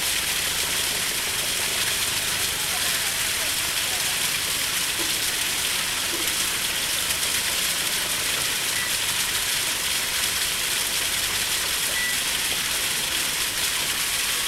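Water splashes and bubbles steadily into a pond.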